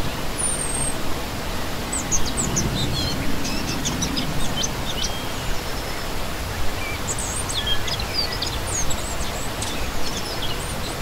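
A shallow stream rushes and splashes steadily over rocks.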